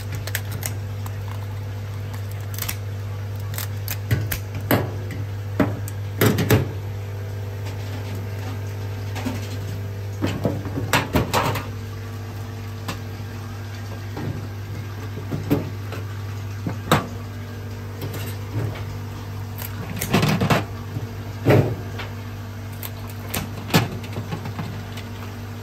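Metal scissors snip through crab shell.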